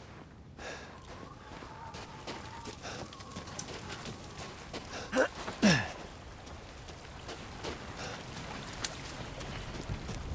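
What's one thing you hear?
Fire crackles and roars nearby.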